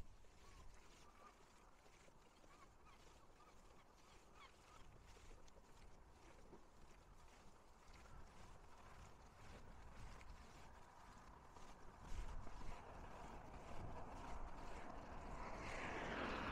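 Waves wash against rocks nearby.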